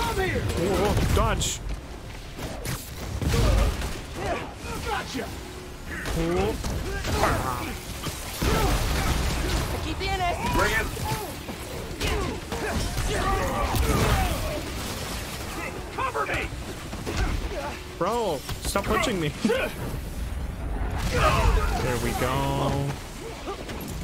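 Punches and kicks thud in a game fight.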